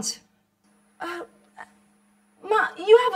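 A woman speaks in a raised, upset voice.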